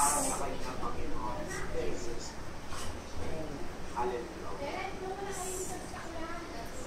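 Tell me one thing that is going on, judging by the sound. A middle-aged man speaks earnestly over an online call, heard through a loudspeaker.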